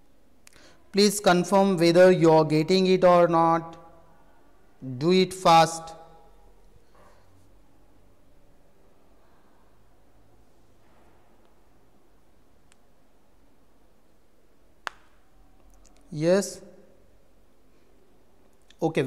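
A man speaks close to a microphone in short bursts with long pauses.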